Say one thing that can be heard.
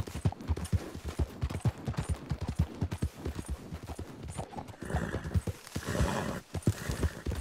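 A horse's hooves thud at a fast, steady gallop.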